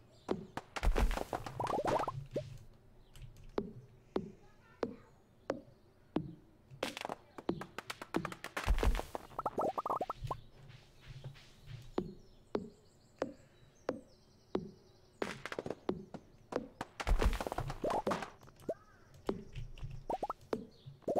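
Footsteps patter steadily on grass.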